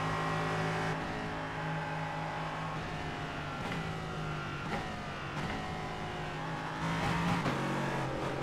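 A race car engine drops in pitch as the car brakes and shifts down.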